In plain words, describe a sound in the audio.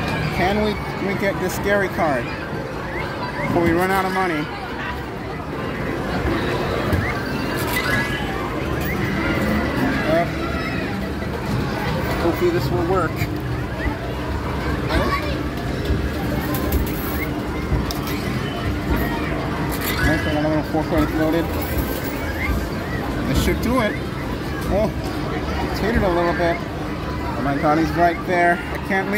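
Arcade machines play bright electronic jingles and tones all around.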